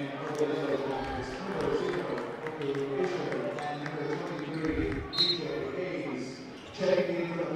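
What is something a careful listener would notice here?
A basketball bounces on a hard floor in a large echoing gym.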